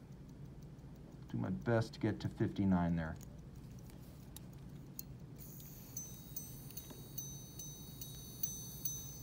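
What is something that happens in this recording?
A mechanical watch ticks softly up close.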